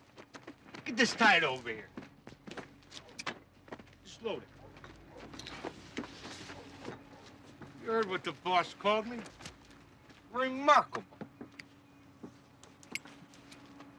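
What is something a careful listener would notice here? Boxes thud as men unload a truck.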